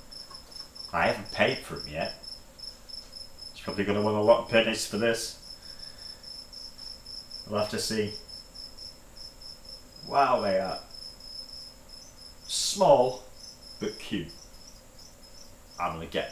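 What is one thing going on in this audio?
A middle-aged man talks in short bursts, close by.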